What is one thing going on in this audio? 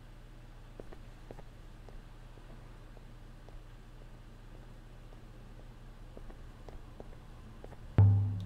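Footsteps tap softly on stone paving.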